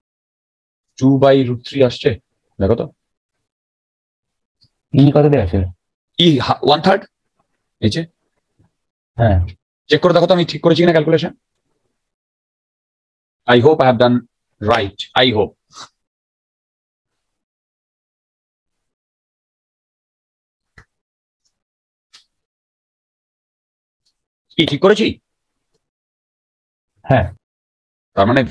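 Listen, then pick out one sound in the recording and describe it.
A man explains calmly into a close microphone, in short bursts with pauses.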